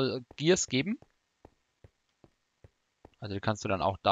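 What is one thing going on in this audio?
Footsteps tap softly on a hard floor at an even pace.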